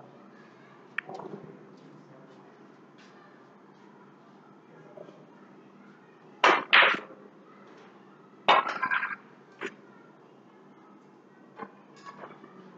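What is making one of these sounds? Snooker balls click together on a table.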